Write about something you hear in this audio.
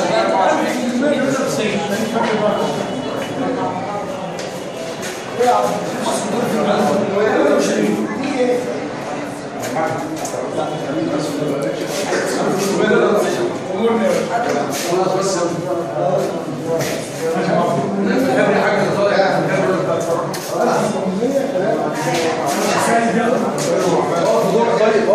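Several men talk and murmur together close by.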